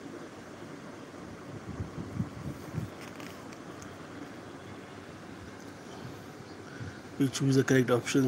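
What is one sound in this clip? Paper pages rustle as a book page is turned.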